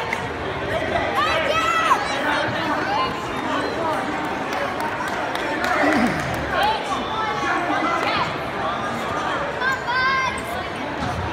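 Adults in the crowd shout and cheer loudly.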